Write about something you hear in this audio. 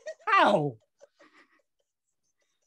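A woman exclaims loudly over an online call.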